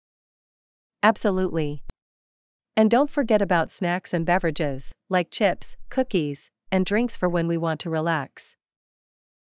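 A man speaks calmly and evenly, as if reading out.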